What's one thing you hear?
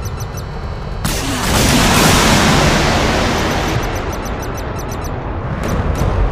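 A cannon fires in a rapid burst.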